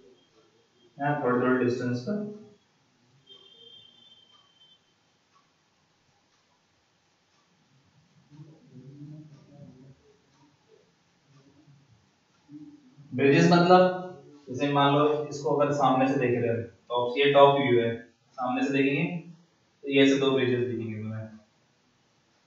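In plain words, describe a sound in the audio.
A young man explains as if teaching a lesson.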